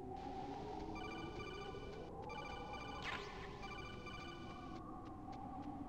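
A video game's call alert beeps in a quick repeating pattern.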